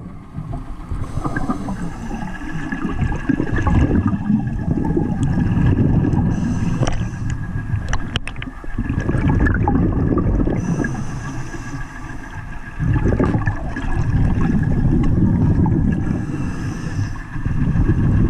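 Water churns and swishes with a low muffled roar.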